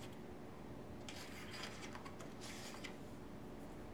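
A page of a book is turned with a soft rustle.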